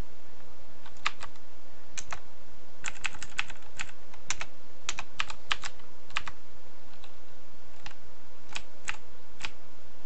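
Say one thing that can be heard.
Game menu sounds click and blip as options are chosen.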